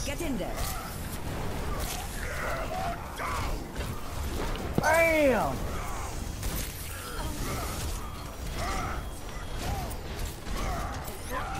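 Electric weapons crackle and zap in rapid bursts.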